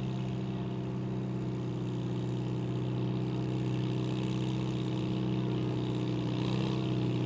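A tractor engine roars loudly and steadily close by.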